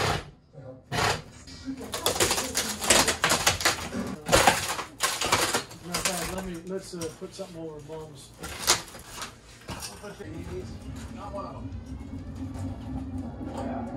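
Wooden boards knock and scrape as they are pulled loose.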